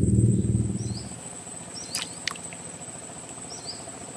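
A fishing float plops into the water.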